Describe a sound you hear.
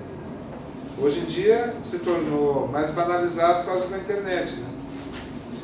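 An older man speaks in a room with some echo.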